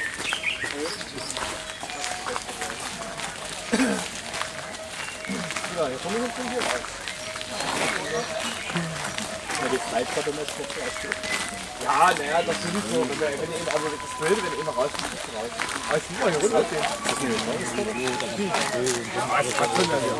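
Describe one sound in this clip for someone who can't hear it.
Several adults talk nearby outdoors, with voices overlapping.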